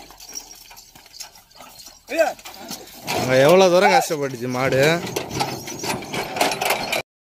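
A wooden cart rattles and creaks as it rolls over grass.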